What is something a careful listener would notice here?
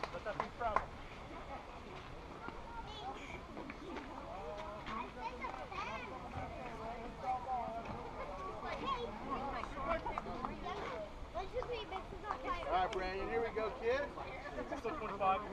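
Children chatter and call out across an open outdoor field.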